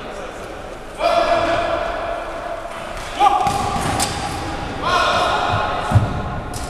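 Young men shout to each other across a large echoing hall.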